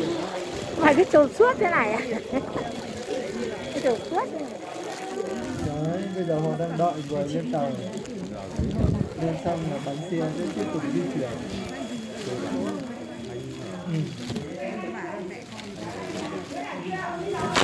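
Plastic rain ponchos rustle and crinkle close by.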